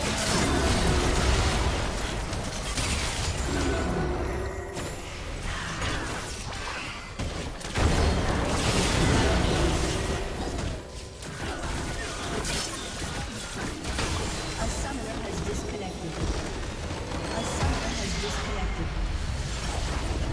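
Magic blasts and weapon blows crash in a hectic fight.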